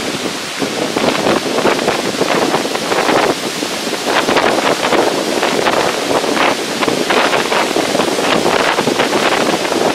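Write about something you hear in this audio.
Wind blusters and buffets loudly outdoors.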